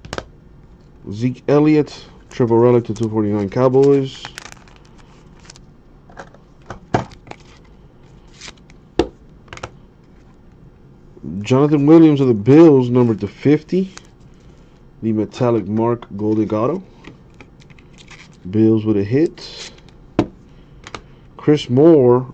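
Plastic card sleeves crinkle and click as they are handled.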